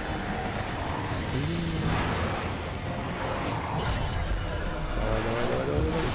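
A large creature growls and roars.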